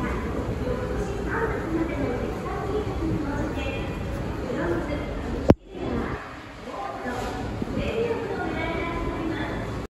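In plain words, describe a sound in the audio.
An escalator hums and rattles steadily close by.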